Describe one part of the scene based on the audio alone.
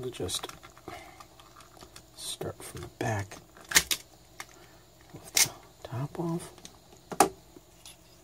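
A plastic casing clicks and snaps as it is pried open.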